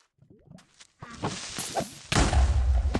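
A creature hisses loudly up close.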